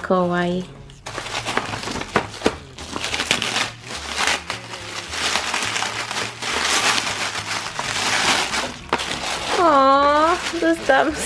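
Crinkly foil wrapping paper rustles and crackles as hands tear it open.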